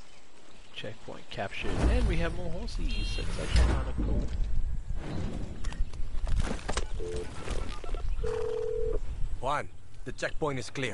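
A man talks casually into a headset microphone.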